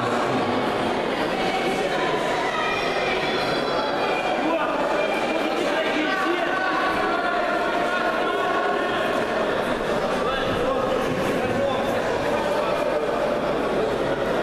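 Men shout and call out across the hall.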